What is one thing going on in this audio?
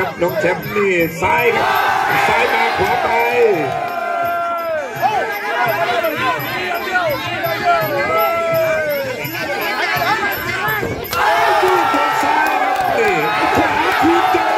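A crowd shouts and cheers loudly.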